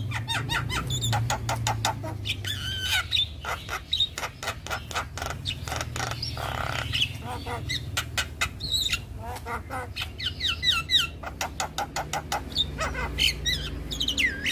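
A bird sings loud, rapid chirps and whistles close by.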